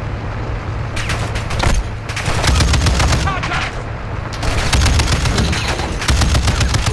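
A mounted machine gun fires rapid bursts.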